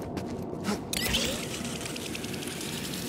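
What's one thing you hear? A rope whips out and swings with a whoosh.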